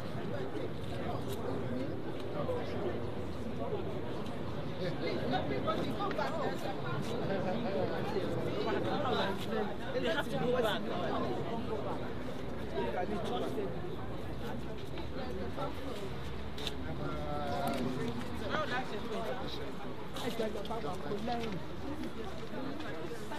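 A crowd of men and women chat outdoors at a distance.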